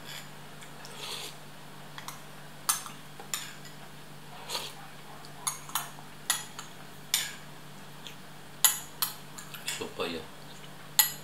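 A man slurps soup close by.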